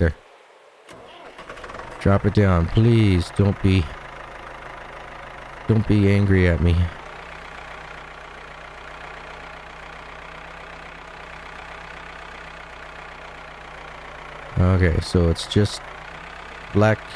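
A tractor engine chugs steadily.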